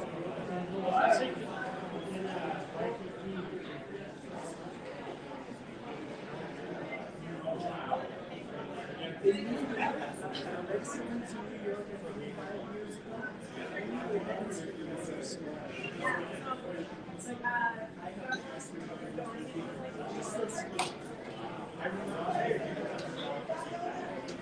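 A crowd of adults chats at tables in a room with some echo.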